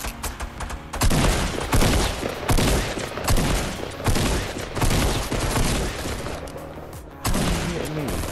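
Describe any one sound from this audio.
Shotgun blasts boom again and again at close range.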